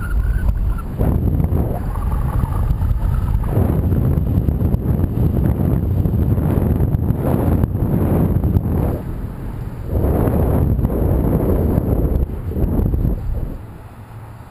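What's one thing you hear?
Wind rushes and buffets loudly over the microphone outdoors.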